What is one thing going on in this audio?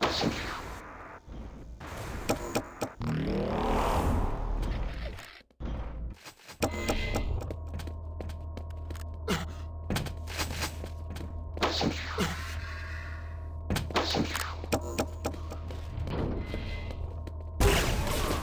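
Game weapons fire in quick sharp bursts.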